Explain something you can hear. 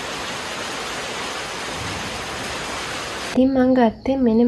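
Steady rain falls outdoors.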